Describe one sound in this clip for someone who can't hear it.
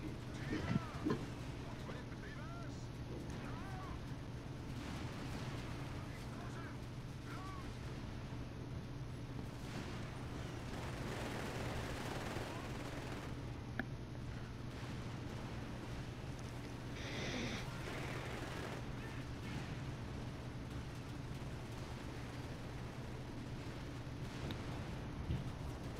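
Explosions boom and crack in the distance.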